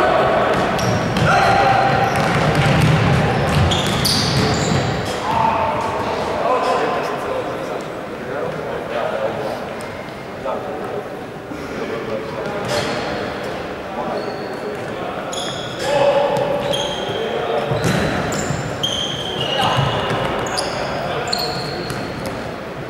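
A ball thumps as players kick it.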